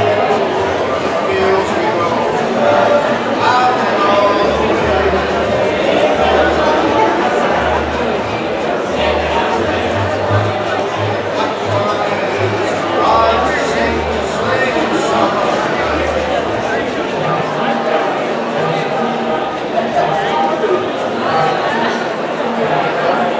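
A band plays music on stage in a large echoing hall.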